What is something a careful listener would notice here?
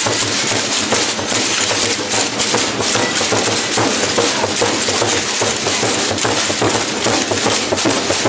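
A wheeled bin rattles as it is dragged along the road.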